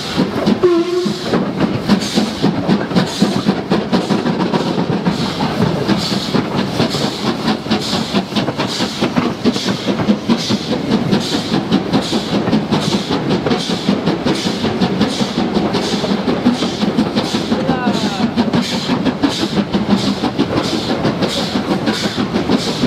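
A steam locomotive chuffs steadily and rhythmically close by.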